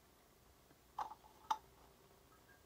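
A plastic cap clicks as it is twisted off a bottle.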